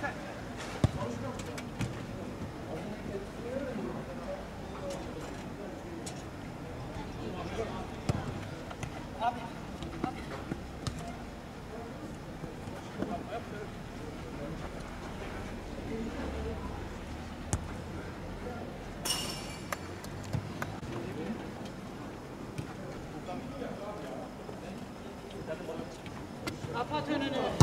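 A ball is kicked with dull thuds on an outdoor pitch.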